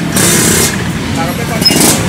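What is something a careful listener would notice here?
A motorcycle rides away along a road.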